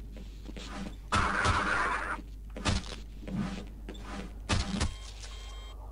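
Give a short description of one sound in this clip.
A metal crowbar swings and thuds heavily into a creature.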